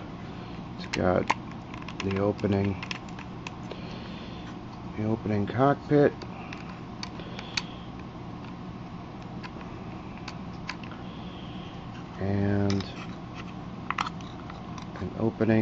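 Small plastic parts click and tap.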